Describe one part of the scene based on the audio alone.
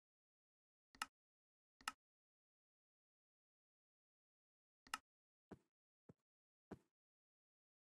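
Menu buttons click a few times.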